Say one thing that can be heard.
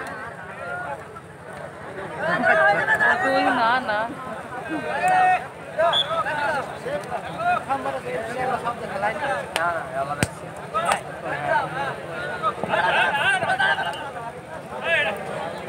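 Men nearby call out excitedly.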